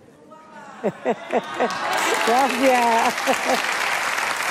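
An elderly woman laughs heartily close by.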